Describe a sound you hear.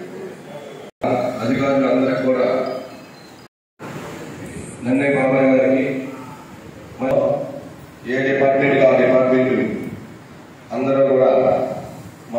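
A man speaks with animation into a microphone, heard through a loudspeaker in an echoing room.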